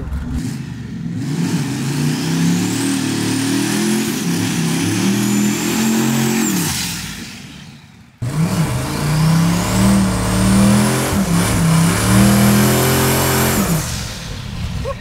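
A car engine revs loudly and roars.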